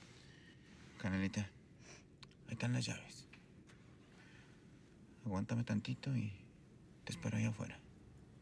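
A young man speaks quietly and close by, in short bursts.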